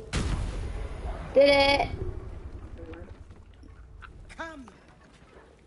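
An explosion booms with a deep rumble that slowly fades.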